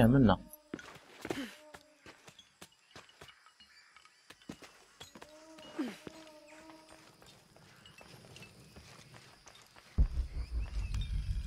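Footsteps scuff softly on stony ground.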